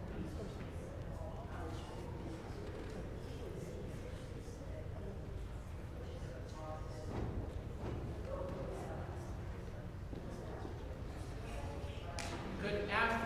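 Audience members murmur quietly in a large echoing hall.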